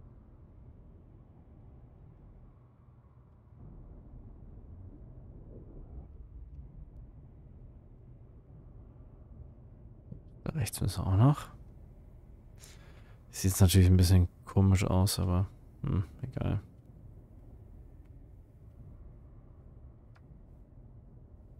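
A spacecraft's thrusters rumble low and steadily.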